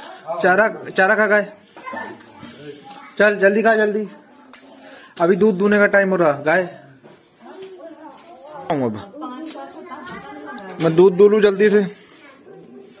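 A young boy talks in short, lively bursts close by.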